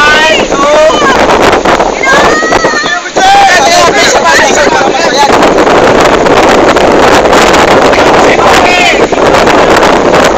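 Young men and women shout and laugh excitedly close by.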